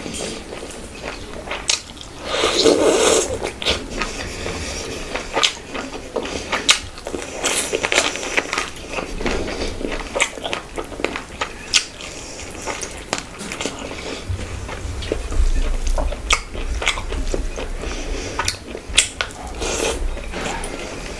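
A young woman chews food wetly and loudly close to a microphone.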